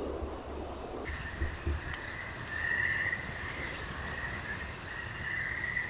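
A wood fire crackles and hisses.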